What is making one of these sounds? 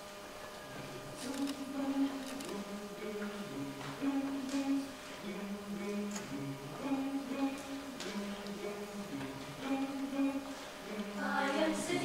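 A youth choir sings softly in harmony in an echoing hall.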